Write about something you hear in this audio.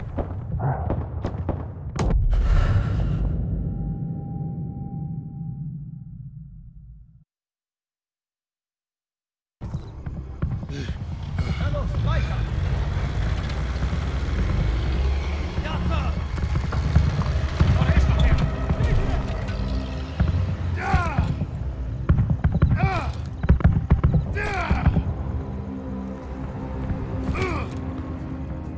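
Explosions boom and rumble in the distance.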